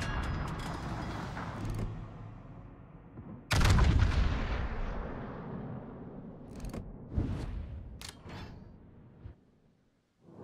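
Heavy naval guns fire with deep, rumbling booms.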